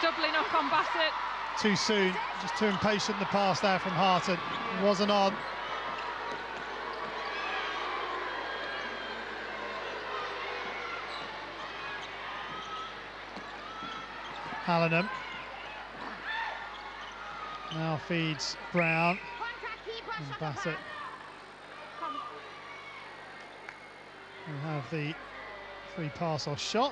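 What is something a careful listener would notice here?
A large indoor crowd murmurs steadily.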